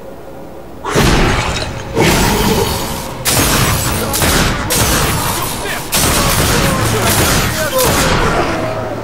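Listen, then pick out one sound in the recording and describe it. Pistols fire in rapid bursts, echoing off hard walls.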